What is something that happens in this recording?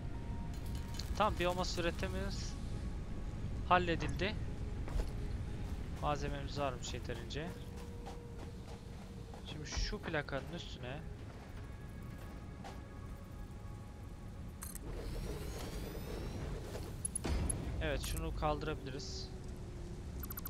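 A man talks casually into a close microphone, in bursts with pauses.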